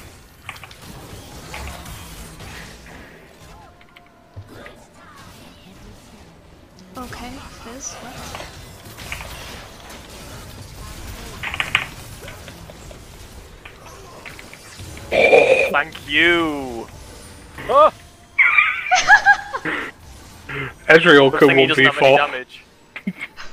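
Fantasy game spells whoosh and clash during a battle.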